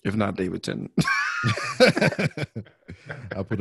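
Two men laugh over an online call.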